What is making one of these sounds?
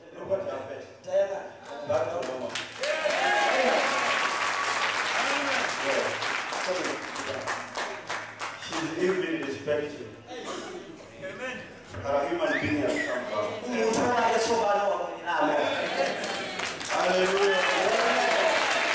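A large crowd sings together loudly in an echoing hall.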